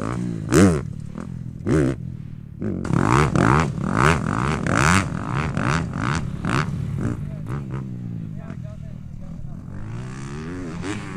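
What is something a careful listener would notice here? A dirt bike engine revs up and down repeatedly, loud and close.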